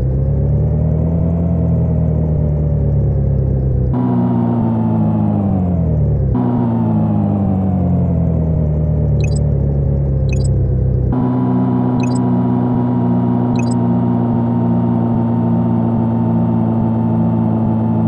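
A car engine hums steadily, its pitch slowly falling as the car slows down.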